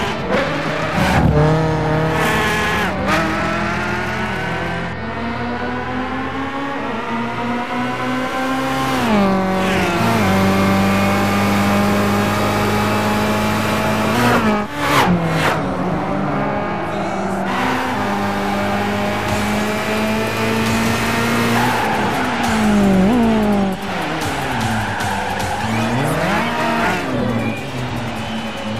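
A racing car engine roars at high revs, rising and dropping in pitch as it shifts gears.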